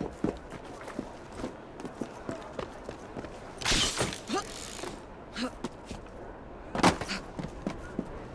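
Hands and feet scrape and thump while clambering over stone and roof tiles.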